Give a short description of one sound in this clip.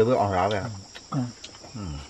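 A man slurps soup from a bowl.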